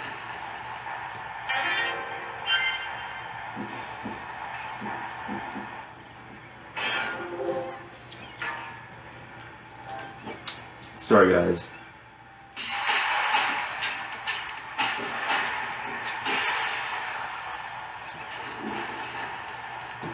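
Upbeat video game music plays from a television speaker.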